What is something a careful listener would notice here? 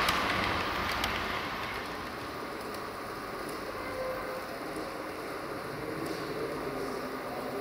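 A model train rattles along its track with a steady, low rumble.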